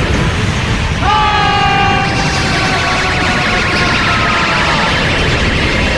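A man shouts with strain.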